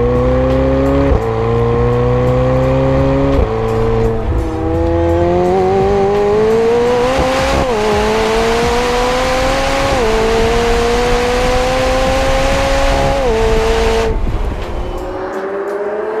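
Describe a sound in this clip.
A sports car engine roars loudly, revving up through the gears with sharp shifts.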